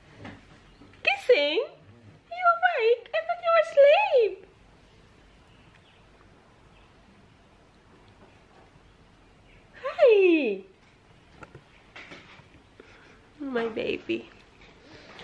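A young woman speaks softly and playfully close by.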